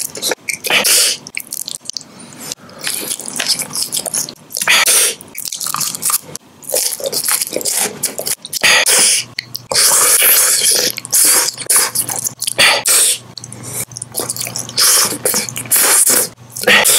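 A man crunches and chews candy loudly and close up.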